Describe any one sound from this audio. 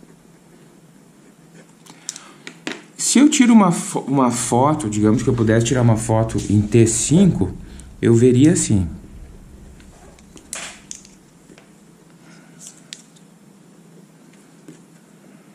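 Pens clack lightly as they are set down and picked up.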